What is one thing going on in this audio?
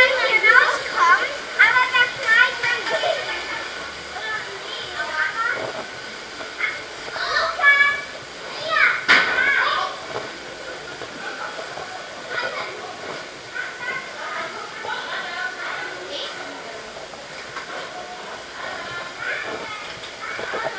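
Young children shout and squeal excitedly nearby.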